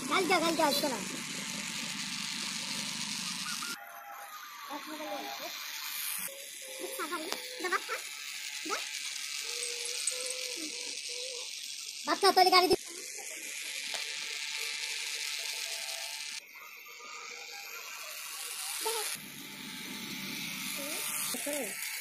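A small toy motor whirs steadily.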